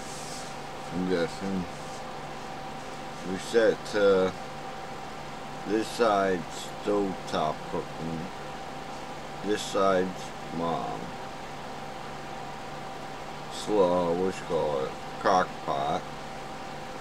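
A middle-aged man speaks calmly and close by, in short bursts with pauses.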